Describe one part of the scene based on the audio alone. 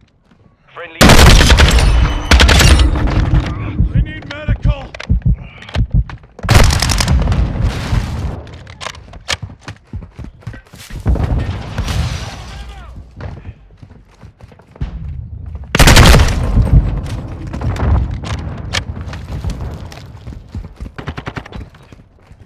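Gunfire bursts rapidly and loudly.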